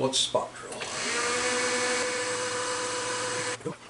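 A milling machine spindle spins up and whirs steadily.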